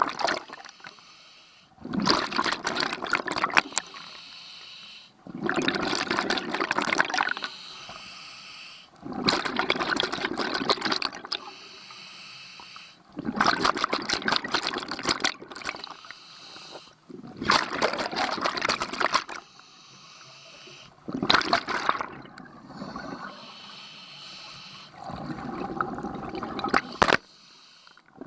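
A scuba diver breathes out through a regulator in loud, regular bubbling bursts underwater.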